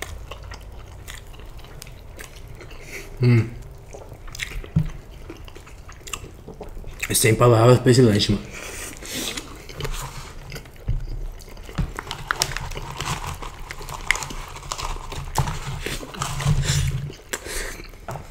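Crisp food crunches as it is bitten.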